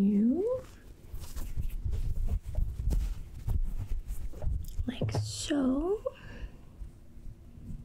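Fabric rustles and brushes against a microphone.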